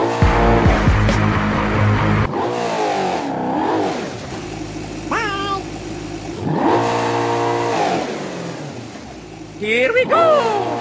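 A car engine revs loudly, rising and falling.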